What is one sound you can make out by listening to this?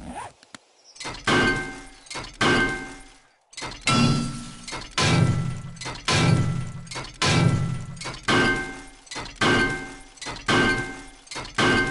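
A metal wrench strikes metal again and again with heavy, rhythmic clanging blows.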